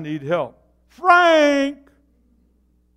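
An elderly man calls out loudly.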